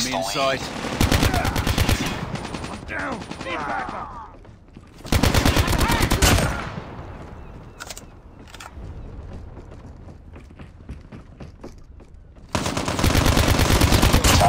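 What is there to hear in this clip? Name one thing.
A rifle fires in rapid bursts of gunshots.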